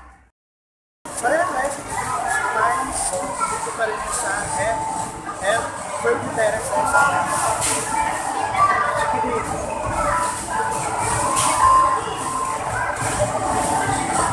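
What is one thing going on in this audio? A crowd chatters indoors with a busy, noisy hum.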